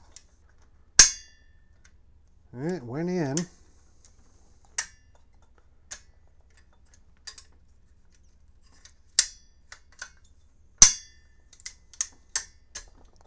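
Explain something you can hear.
Metal parts of a rifle click and clack as they are handled.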